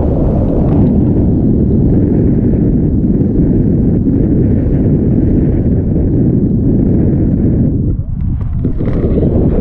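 Strong wind roars steadily against a microphone.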